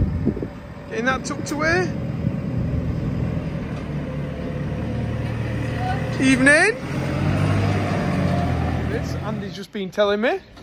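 A heavy diesel engine rumbles as a telehandler drives past.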